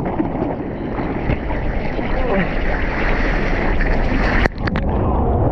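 A wave roars as it curls and breaks overhead.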